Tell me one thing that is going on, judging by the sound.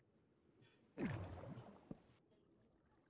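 Bubbles burst in a short, loud rush.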